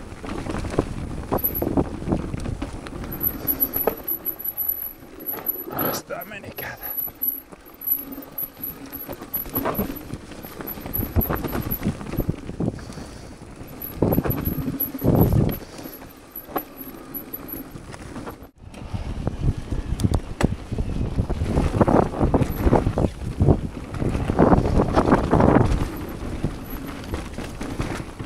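Bike tyres roll and crunch over dirt and rock.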